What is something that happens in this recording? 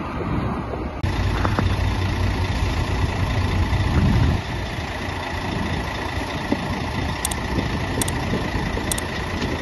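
A fire engine's motor idles nearby with a low rumble.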